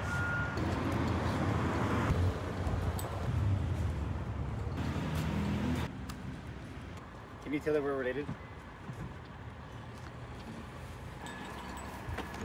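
Footsteps walk along a pavement outdoors.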